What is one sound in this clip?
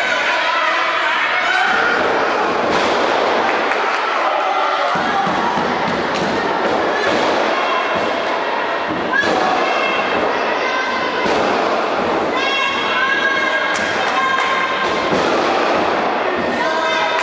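A crowd cheers and shouts throughout in an echoing hall.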